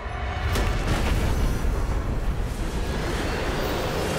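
A magical blast bursts with a loud rushing roar.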